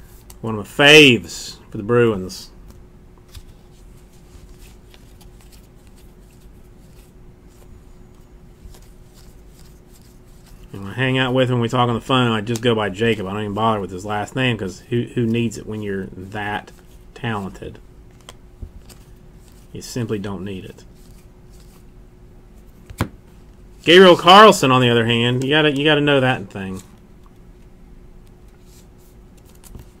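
Trading cards rustle and slide as hands flip through them.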